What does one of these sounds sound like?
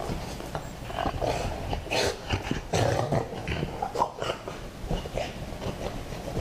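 Two dogs growl and snort while play-fighting up close.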